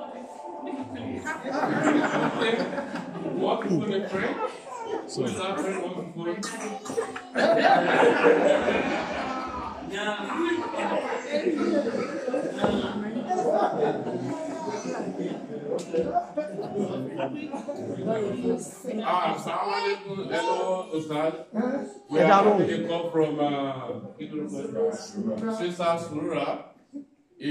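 A young man talks with animation in a room with a slight echo.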